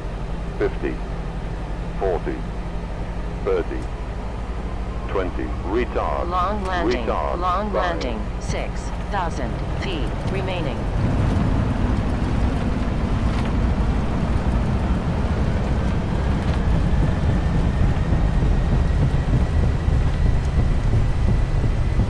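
Tyres rumble along a runway.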